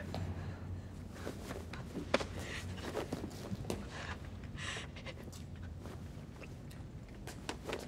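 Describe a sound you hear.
A young woman shouts tearfully in an echoing hall.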